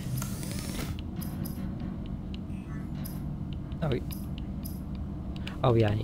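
Soft electronic blips sound as menu items are selected.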